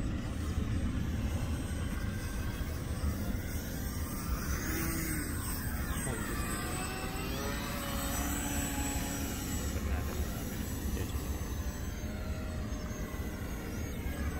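A radio-controlled model biplane drones overhead, its pitch rising and falling as it passes.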